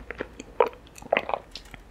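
Sticky tapioca pearls squish and pop close up as they are chewed.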